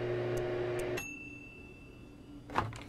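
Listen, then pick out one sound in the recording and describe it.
A microwave oven beeps as it finishes.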